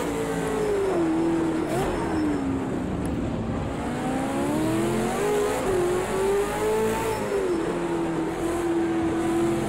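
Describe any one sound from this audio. A race car engine roars loudly, its pitch rising and falling.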